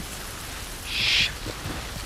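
Rain falls steadily outside.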